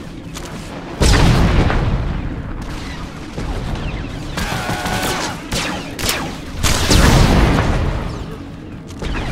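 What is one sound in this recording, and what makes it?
Blaster shots fire in quick bursts.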